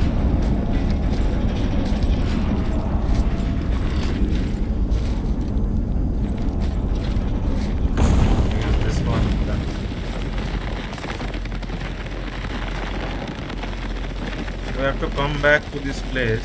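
Heavy footsteps walk on a hard floor.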